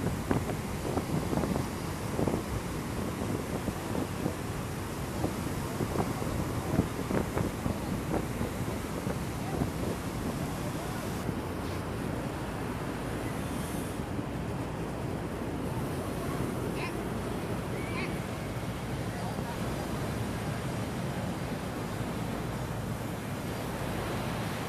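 Sea waves break and wash up on a sandy beach.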